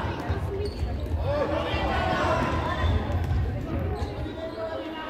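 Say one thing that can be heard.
Children shout and call out in a large echoing hall.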